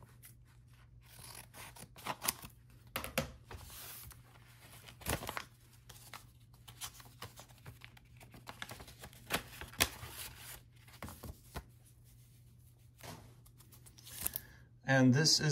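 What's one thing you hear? A paper envelope rustles and crinkles as hands handle it.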